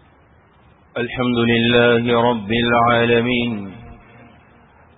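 A man speaks loudly into a microphone in a long, drawn-out chant.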